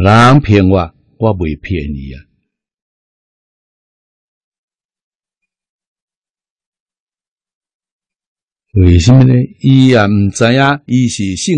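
An elderly man speaks calmly and closely into a microphone, with pauses.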